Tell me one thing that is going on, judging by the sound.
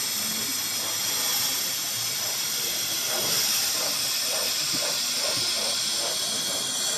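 Small metal wheels rattle and click over the rails.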